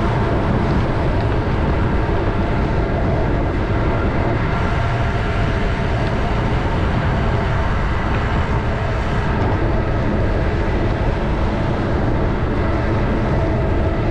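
Tyres roll on smooth pavement with a steady roar.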